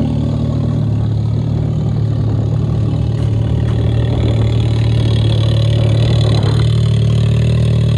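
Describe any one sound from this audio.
Studded tyres scrabble over ice.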